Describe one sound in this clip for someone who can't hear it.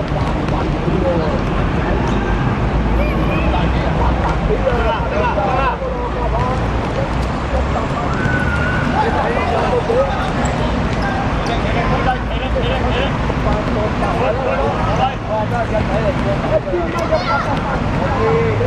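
Young men shout and call out to each other in a large echoing hall.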